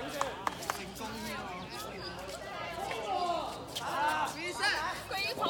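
Young players shout and call out across an open outdoor court.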